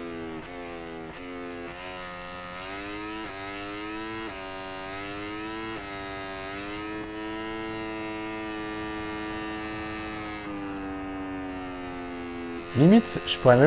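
A motorcycle engine whines and shifts through gears.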